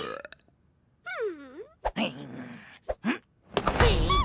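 A cartoon vampire speaks menacingly in a deep, growling voice.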